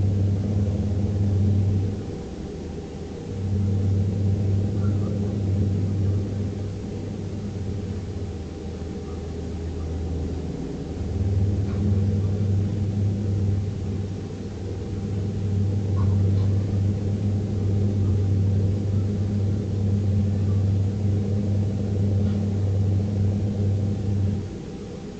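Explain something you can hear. A truck engine hums with a low, steady drone that swells and eases.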